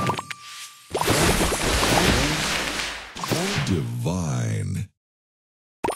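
A bright jingle plays when a big combo clears the board.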